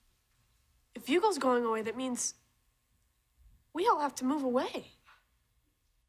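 A teenage girl speaks with surprise, close by.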